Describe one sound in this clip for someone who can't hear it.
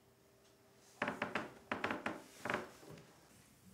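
A metal pot clanks and rattles.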